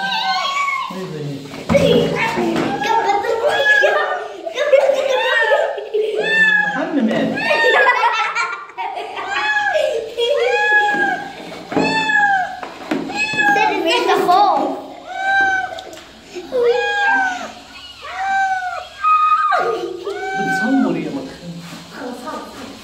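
A cat meows loudly and repeatedly in distress.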